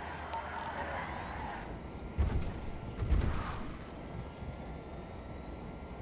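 Tyres rumble and crunch over rough ground.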